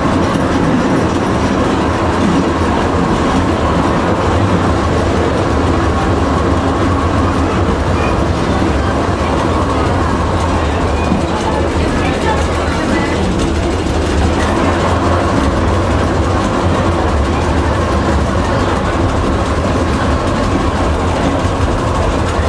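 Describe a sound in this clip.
A train engine rumbles steadily close by.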